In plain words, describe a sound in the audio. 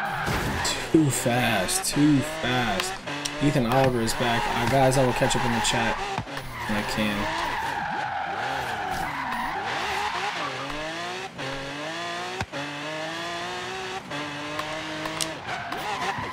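A car engine revs and roars, rising and falling in pitch as gears shift.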